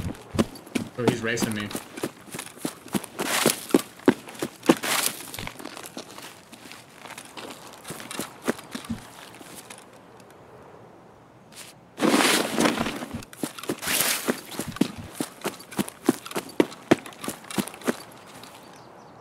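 Footsteps rustle through tall grass and brush.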